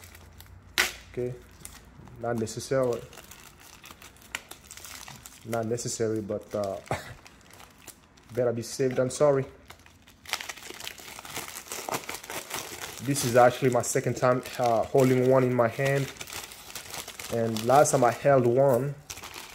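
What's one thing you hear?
A plastic mailer bag crinkles and rustles in someone's hands.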